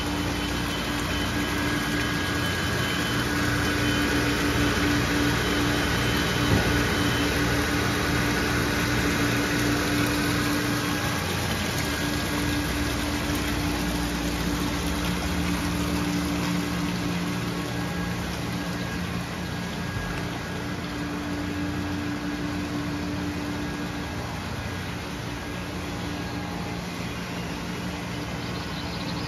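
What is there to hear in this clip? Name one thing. A pump motor hums steadily.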